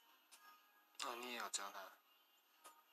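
A woman talks softly close by.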